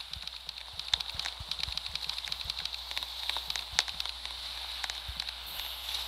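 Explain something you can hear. Keys on a touchscreen keyboard tap quickly in soft clicks.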